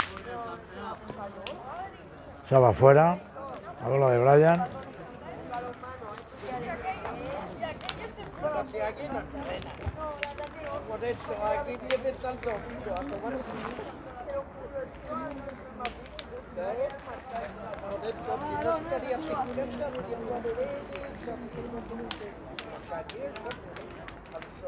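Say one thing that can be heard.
Metal balls clack against each other on the ground.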